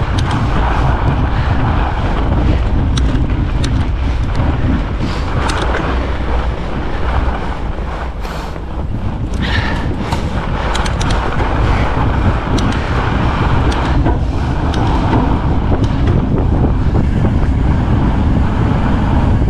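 Bicycle tyres crunch over packed snow.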